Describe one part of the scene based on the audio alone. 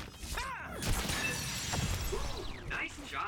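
A sword slashes with a sharp electric whoosh.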